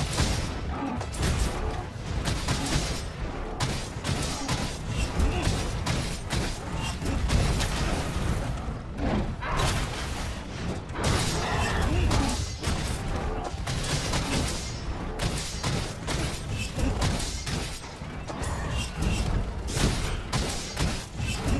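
A large monster roars and thrashes.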